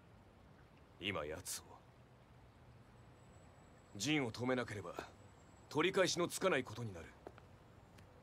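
A young man speaks in a low, calm voice.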